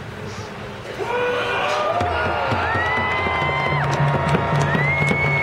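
Several people cheer and whoop loudly.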